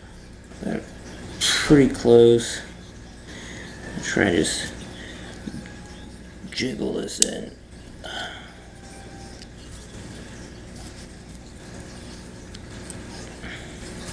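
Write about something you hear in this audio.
Small metal parts click and scrape as they are handled close by.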